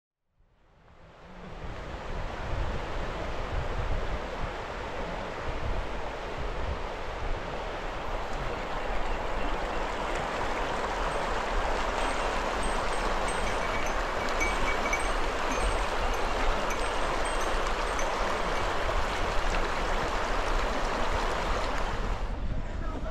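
A river rushes and babbles over stones nearby.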